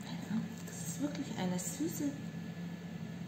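A woman speaks briefly and softly close by.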